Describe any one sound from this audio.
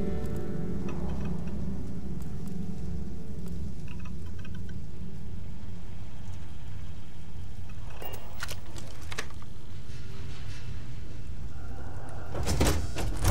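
A low machine hum drones steadily.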